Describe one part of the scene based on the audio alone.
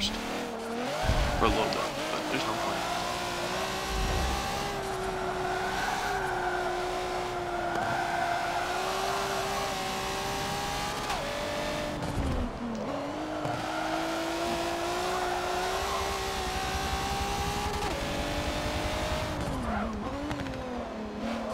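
Tyres squeal as a car slides through corners.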